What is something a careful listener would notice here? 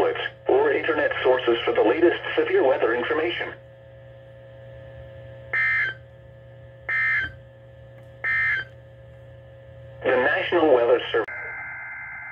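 A weather radio speaker reads out an alert in a synthetic voice.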